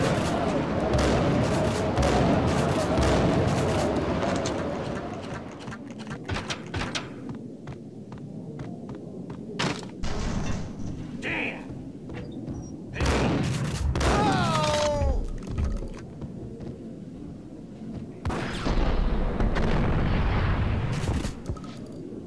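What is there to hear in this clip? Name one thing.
A shotgun fires with loud booming blasts.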